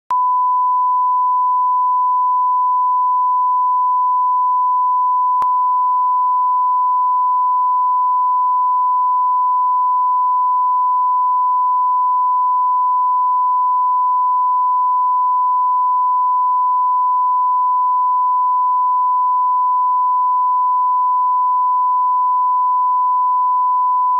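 A steady, high-pitched test tone sounds without a break.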